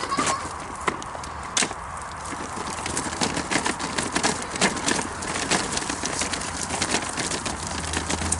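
Bicycle tyres crunch and rattle over a gravel path.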